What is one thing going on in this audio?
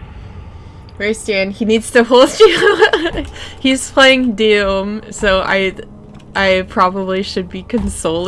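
A young woman talks and laughs with animation into a close microphone.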